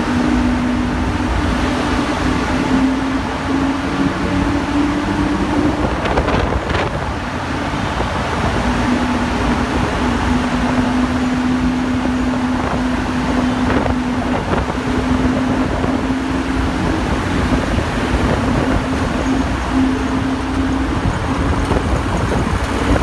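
A Lamborghini Huracán's V10 engine burbles at low revs as the car rolls slowly.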